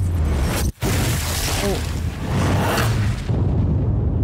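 A burst of fire roars loudly.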